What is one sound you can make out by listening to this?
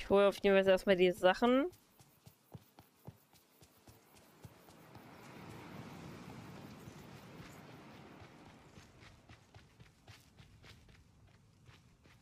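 Footsteps patter quickly on a path.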